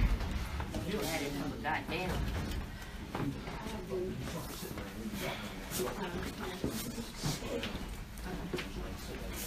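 Several young women chatter and talk casually nearby.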